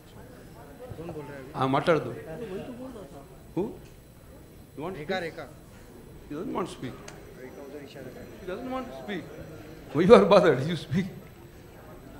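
An elderly man speaks with animation into a microphone, heard through loudspeakers in a large hall.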